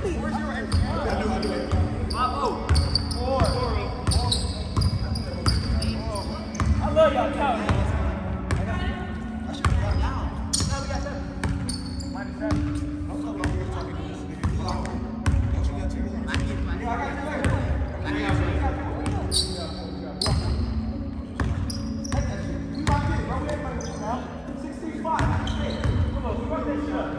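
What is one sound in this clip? Sneakers squeak sharply on a wooden gym floor.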